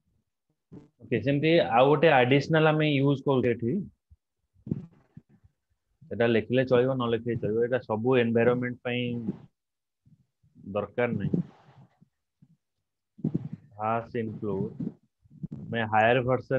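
A young man speaks calmly through a microphone, explaining at a steady pace.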